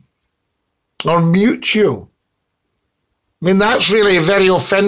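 An older man speaks with animation, close to the microphone.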